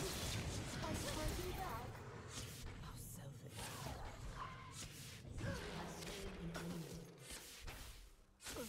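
Game spell effects whoosh and crackle in a busy fight.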